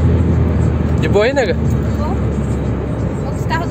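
A young woman speaks briefly inside a car.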